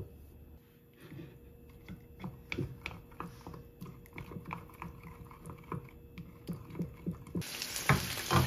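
A spoon stirs and clinks against a glass cup.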